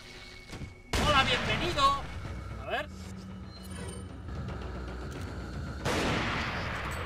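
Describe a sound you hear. A shotgun fires with a loud bang.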